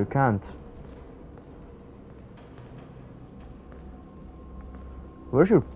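Footsteps tap slowly on a hard tiled floor.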